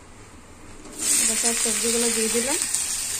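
Vegetables drop into hot oil and sizzle loudly.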